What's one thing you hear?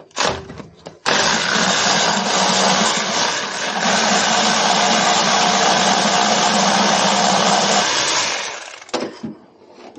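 An aerosol can sprays in a steady loud hiss.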